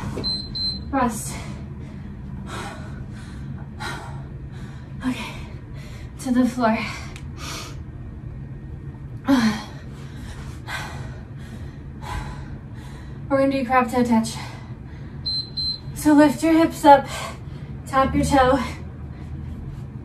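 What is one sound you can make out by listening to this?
A woman talks with animation nearby.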